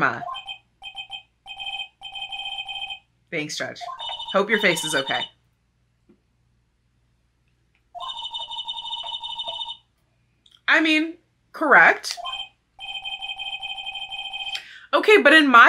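Short electronic beeps chatter rapidly in bursts.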